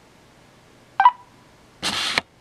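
A small electronic device gives a short beep.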